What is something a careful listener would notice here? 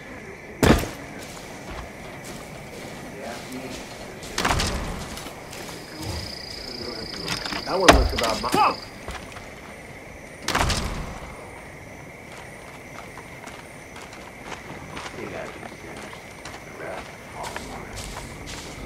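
Footsteps rustle through grass and brush.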